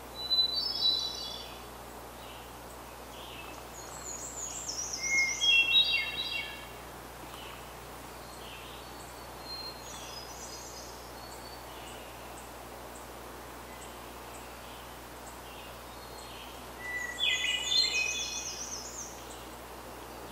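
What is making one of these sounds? Birds sing in bright, warbling phrases.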